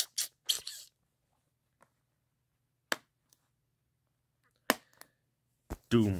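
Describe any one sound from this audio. Hands handle a plastic disc case with light clicks and taps.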